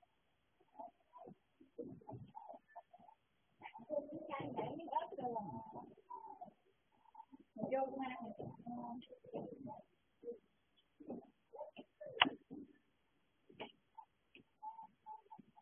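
A woman talks nearby in short bursts.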